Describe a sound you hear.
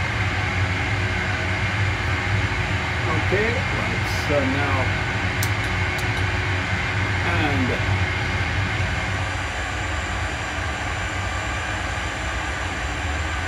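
A steady low engine rumble hums.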